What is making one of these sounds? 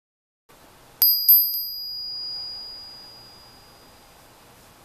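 A small bell rings once and rings on as it fades.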